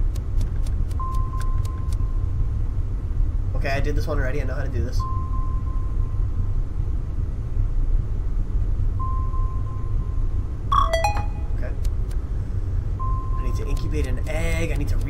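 Short electronic beeps and chimes sound from a game.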